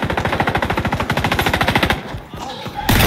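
An automatic rifle fires a rapid burst of shots.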